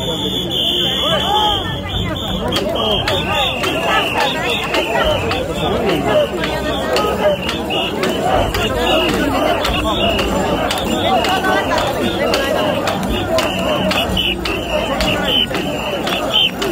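A large crowd of men chants loudly in rhythm outdoors.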